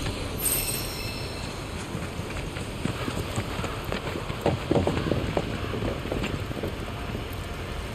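Footsteps tread over rough ground.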